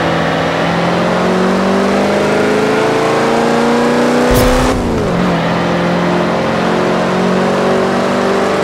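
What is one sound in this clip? A truck engine revs up steadily as it accelerates, then drops in pitch as it shifts gear.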